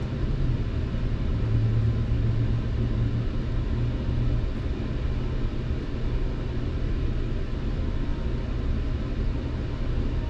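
Cars pass by on a road some distance away.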